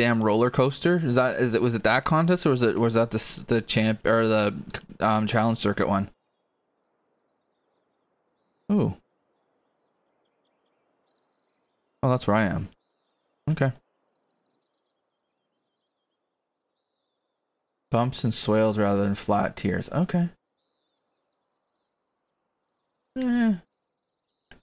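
A man talks calmly and casually, close to a microphone.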